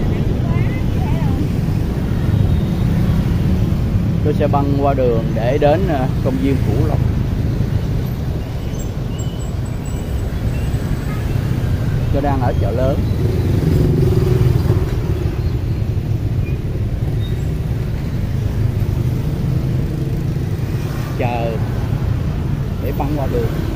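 Motorbikes and traffic rumble past outdoors.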